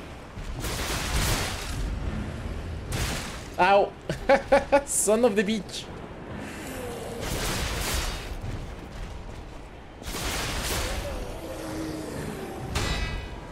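Heavy weapon blows whoosh and clash with metal.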